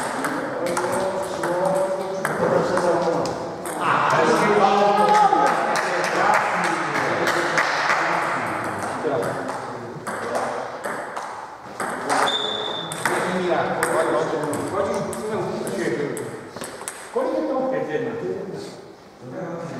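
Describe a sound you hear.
Men talk with animation in a large echoing hall.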